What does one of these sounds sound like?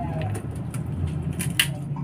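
Crunchy pork rinds crackle as a woman bites them.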